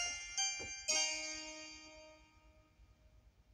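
An electric piano plays a few chords that ring out and fade.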